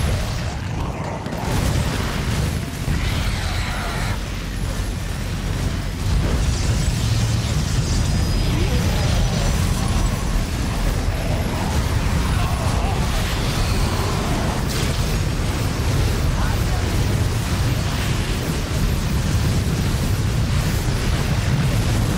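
Game gunfire and explosions crackle and boom in a battle.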